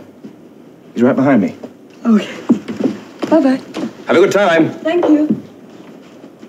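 A man answers in a cheerful voice.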